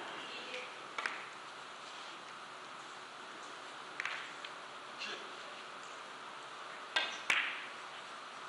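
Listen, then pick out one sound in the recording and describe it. Billiard balls click against each other and thud off the cushions.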